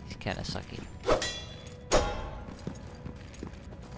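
Footsteps thud in an echoing hall.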